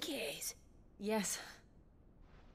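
A woman answers softly, close by.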